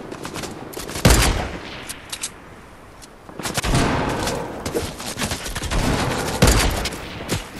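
Loud gunshots crack, with a short booming echo.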